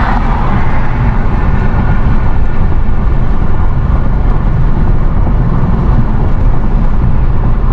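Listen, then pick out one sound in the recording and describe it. A car engine hums steadily from inside as it drives along a highway.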